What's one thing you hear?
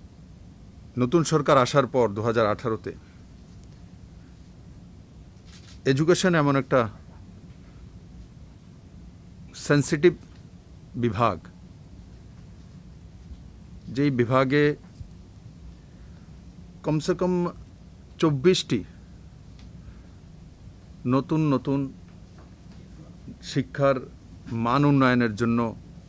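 A man speaks into microphones in short, halting phrases with long pauses.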